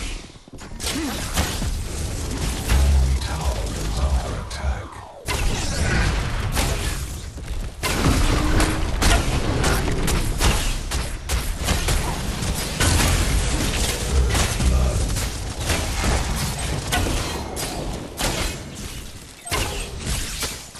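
Game spells and weapons blast and crackle in a fast fight.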